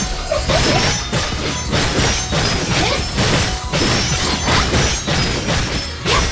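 Rapid sword slashes and hits clash in quick succession.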